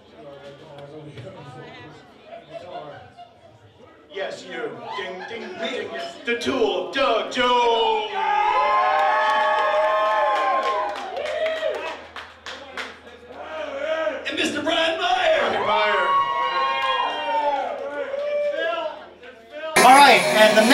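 A rock band plays live through loudspeakers.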